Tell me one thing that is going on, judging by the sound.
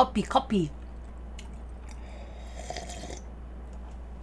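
A young woman sips a drink through a straw.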